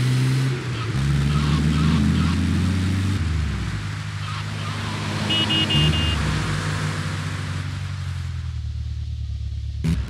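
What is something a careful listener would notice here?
A van engine hums and revs steadily as it drives.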